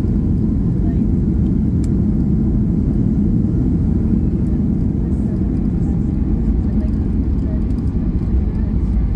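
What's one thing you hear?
A jet airliner's engines roar steadily, heard from inside the cabin.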